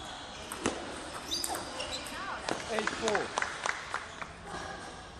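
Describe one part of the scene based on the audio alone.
A table tennis ball clicks sharply back and forth between paddles and table.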